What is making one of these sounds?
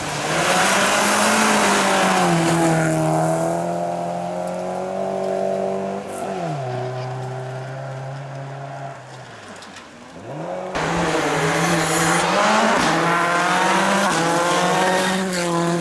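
Loose gravel sprays and rattles under spinning tyres.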